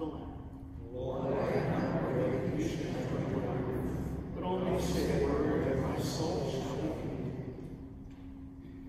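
A group of people sings together in a large echoing hall.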